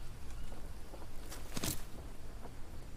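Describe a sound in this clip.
Leaves rustle sharply as a plant is pulled up.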